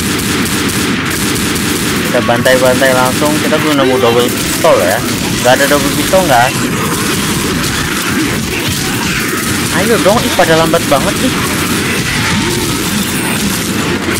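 Gunshots bang out in quick bursts.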